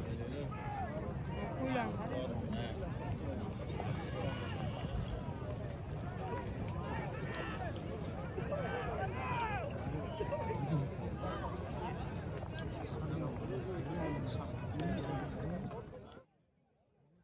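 A crowd of men shouts and whoops in the distance.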